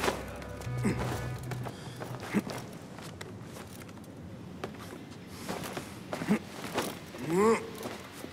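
Wooden planks creak and knock under climbing hands and feet.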